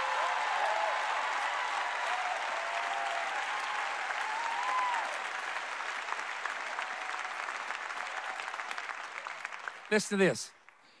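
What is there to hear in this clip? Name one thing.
A large crowd applauds and cheers in a big echoing hall.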